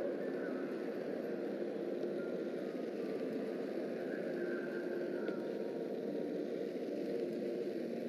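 Flames hiss and crackle steadily.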